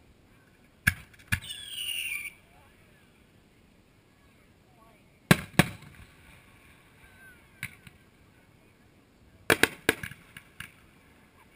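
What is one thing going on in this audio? Fireworks boom in the distance, one after another.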